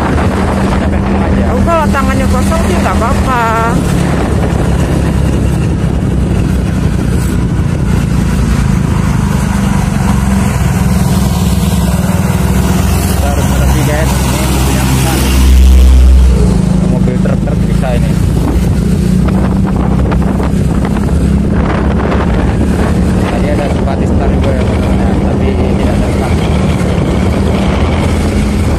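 A motorbike engine drones steadily up close.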